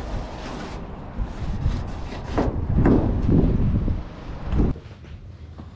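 A marker scrapes across rough stone.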